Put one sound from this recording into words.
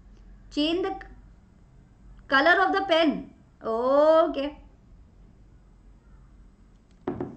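A young woman speaks calmly and clearly, close to a microphone, in short phrases.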